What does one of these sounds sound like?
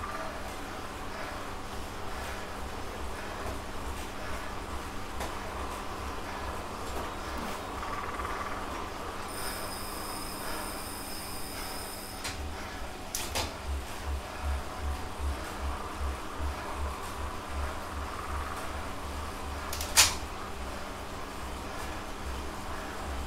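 A man breathes heavily.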